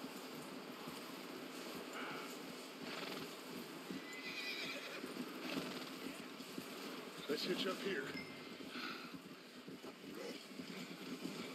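Wind blows in strong gusts outdoors.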